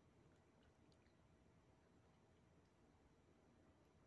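A spoon clinks softly against a plate.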